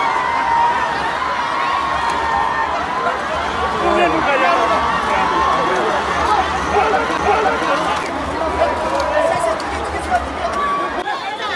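Men shout together as they pull a heavy cart.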